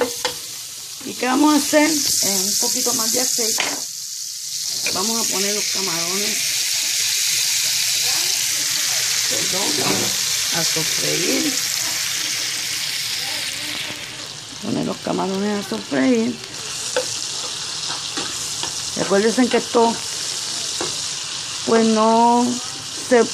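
Food sizzles loudly in a hot frying pan.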